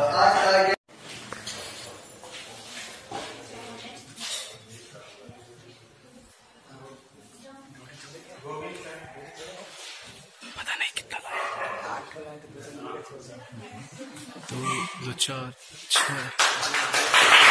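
A man addresses a group from across a room with a slight echo.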